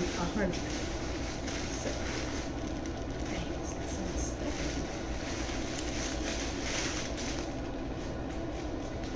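Tissue paper rustles and crinkles.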